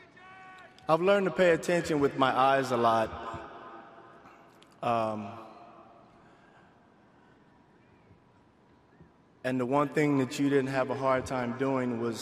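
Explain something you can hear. A middle-aged man speaks calmly into a microphone in a large echoing hall, pausing between phrases.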